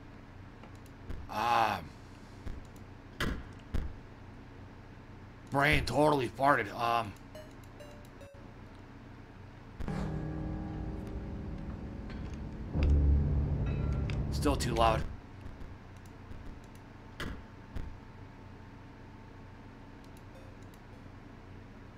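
Soft clicks sound as menu options are picked.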